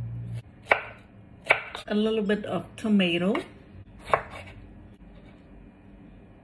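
A knife chops on a wooden board.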